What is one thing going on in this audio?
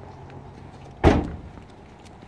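A car hatch slams shut.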